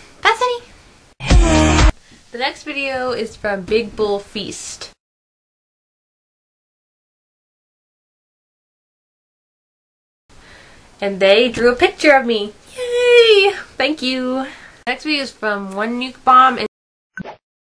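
A second young woman talks and laughs close to a microphone.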